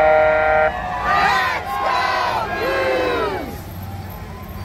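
Police sirens whoop and wail close by.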